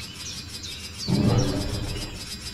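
A large beast roars loudly.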